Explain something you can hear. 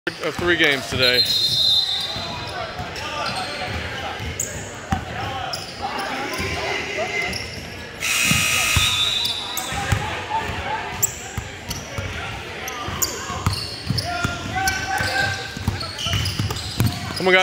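Young boys call out to each other across the court.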